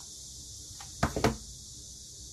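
A plastic glue gun is set down on a table with a clatter.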